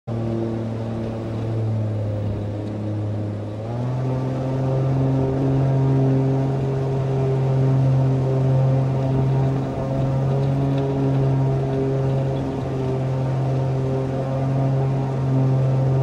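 A propeller plane's engine drones steadily, rising in pitch partway through.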